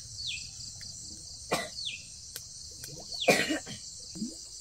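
Sticks knock and snap as a fire is tended.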